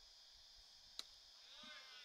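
A bat cracks sharply against a ball outdoors.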